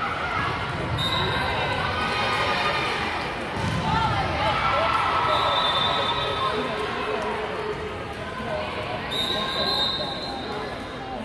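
Sneakers squeak sharply on the court floor.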